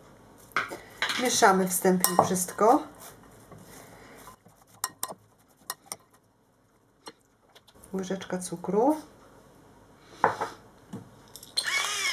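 A metal spoon clinks and scrapes against a glass bowl.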